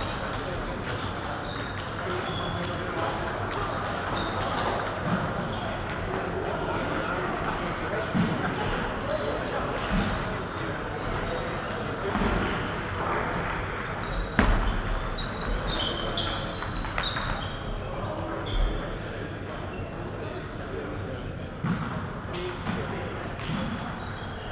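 A crowd of people chatters quietly in an echoing hall.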